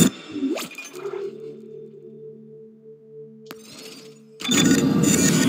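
Soft electronic tones chime as a menu opens.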